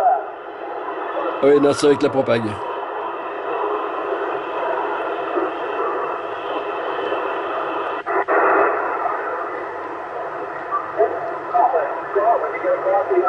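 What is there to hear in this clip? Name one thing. Static hisses steadily from a radio receiver as it is tuned across channels.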